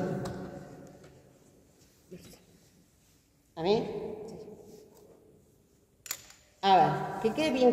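A woman speaks in short bursts through a microphone in an echoing room.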